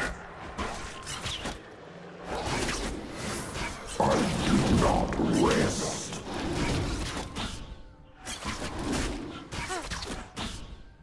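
Blades clash and strike in quick, sharp hits.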